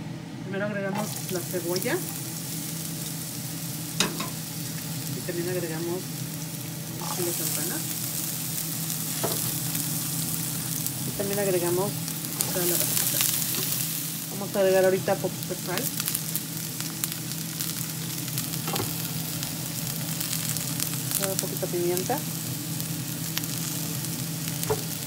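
Food sizzles loudly in hot oil in a frying pan.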